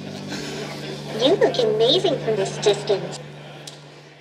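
A robot speaks in a bright, synthetic voice.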